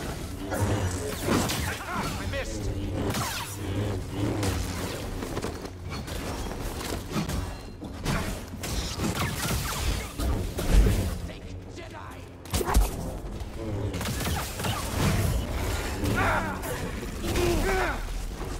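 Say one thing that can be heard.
Blades clash with sharp hits.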